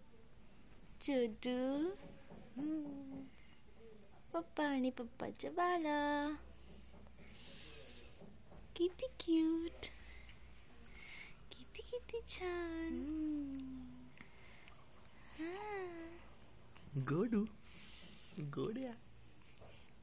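A man speaks softly and playfully up close, in a high sing-song voice.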